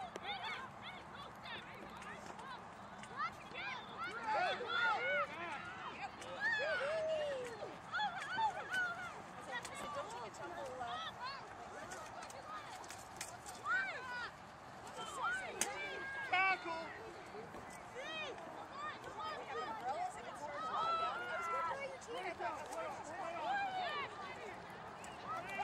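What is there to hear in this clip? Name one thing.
Young women players shout and call to each other across an open field outdoors.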